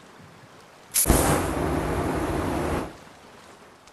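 A spray can flamethrower roars in a short, loud burst.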